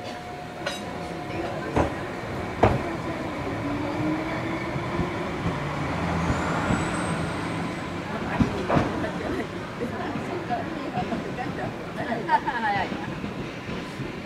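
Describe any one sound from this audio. A train rumbles as it pulls away and slowly fades into the distance.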